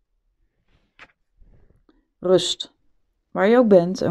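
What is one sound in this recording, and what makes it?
A card is picked up and slid softly off a table.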